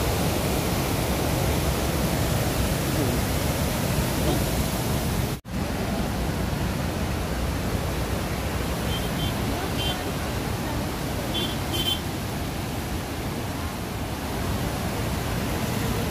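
Floodwater roars and rushes loudly, outdoors.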